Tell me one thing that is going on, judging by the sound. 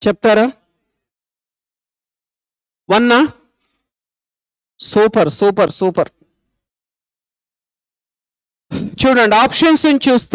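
A man speaks in short phrases with pauses, close to a microphone.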